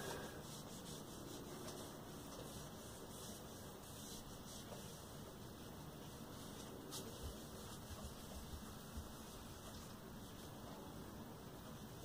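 A cloth rubs softly against wood.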